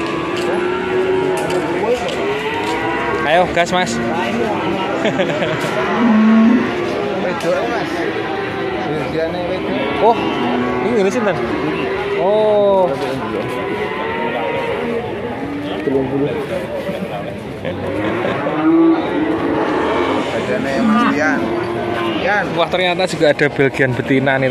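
A crowd of men and women talks busily nearby, outdoors.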